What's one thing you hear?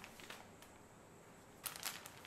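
A paper bag rustles.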